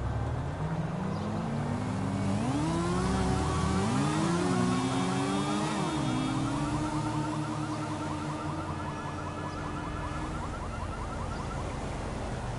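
A car engine revs and passes by.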